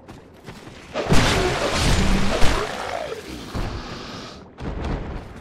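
A blade slashes and strikes a creature with a heavy thud.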